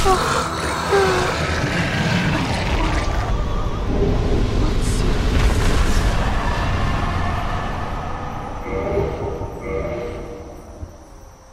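A deep, loud rumbling roar swells and then fades away.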